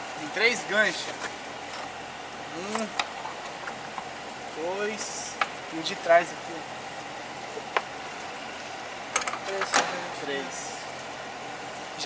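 Plastic latches click as a car roof panel is unfastened.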